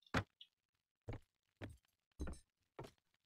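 Footsteps thud on stone stairs.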